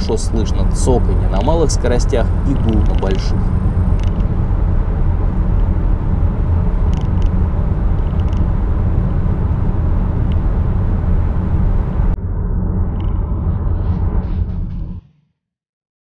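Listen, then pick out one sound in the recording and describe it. Studded tyres roar loudly on a road inside a moving car.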